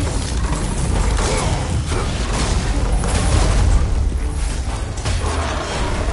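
Blades strike a beast with heavy thuds.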